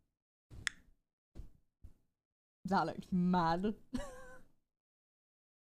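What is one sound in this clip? A young woman speaks playfully and with animation, close to a microphone.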